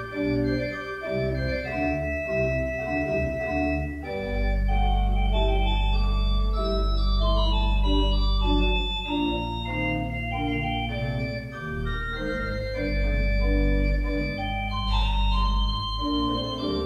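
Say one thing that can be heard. An organ plays slow sustained chords that echo through a large hall.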